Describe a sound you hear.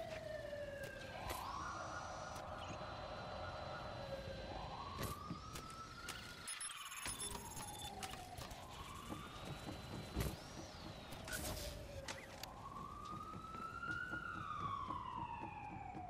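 A small remote-controlled car's motor whirs.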